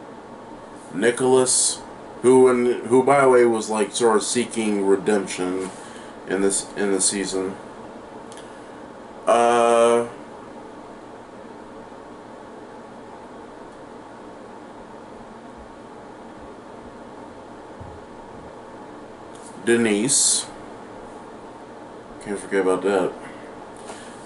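A man speaks close by with animation, in short bursts between long pauses.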